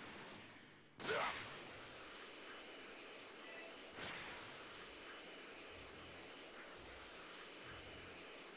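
A crackling aura of energy roars steadily.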